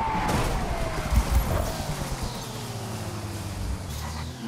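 Tyres thump and crash over rough ground.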